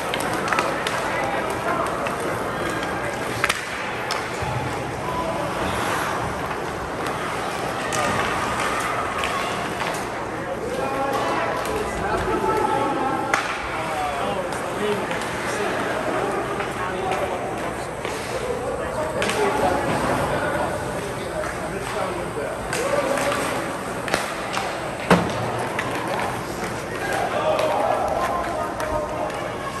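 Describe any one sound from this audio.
Spectators chatter and call out in the distance.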